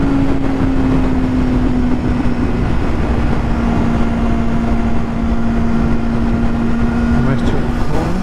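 Traffic roars by on a busy highway.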